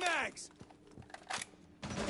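A rifle is reloaded with sharp metal clicks.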